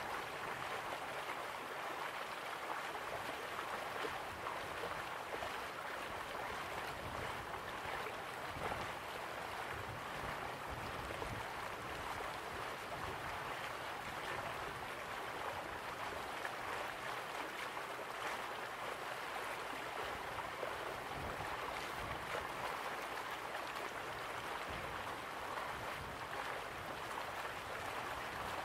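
Water laps gently against a stone river bank.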